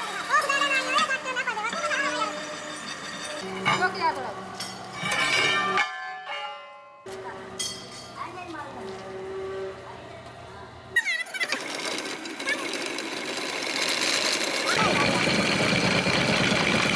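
A drill bit grinds and squeals into steel plate.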